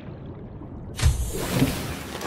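A hatch opens with a heavy thud.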